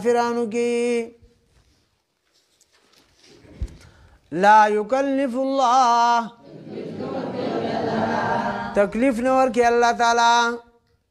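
A man chants in a melodic, drawn-out voice into a microphone.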